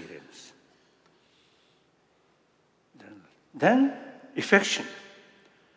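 An elderly man speaks in short bursts through a microphone.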